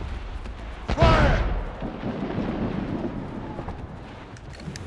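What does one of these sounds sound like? A mortar shell explodes with a heavy blast.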